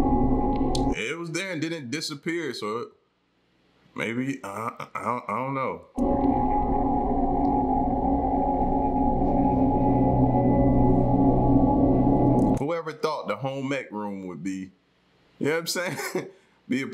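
A man talks calmly and closely into a microphone, in short bursts.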